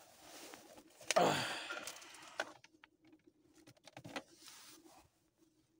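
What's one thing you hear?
A plastic connector clicks and rattles as a hand pulls it out.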